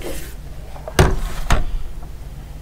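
A hand sets a kitchen scale down on a hard surface with a knock.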